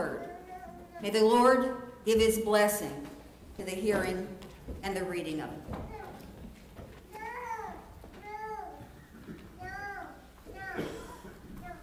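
An elderly woman speaks calmly into a microphone in an echoing hall.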